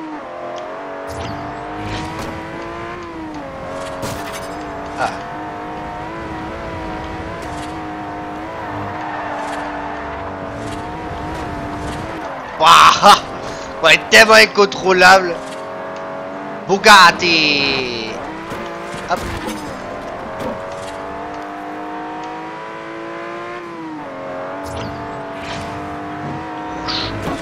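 A racing car engine roars steadily at high speed, its pitch rising and falling with gear changes.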